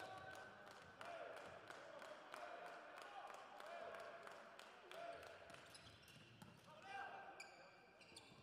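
Sneakers squeak on a hard court floor.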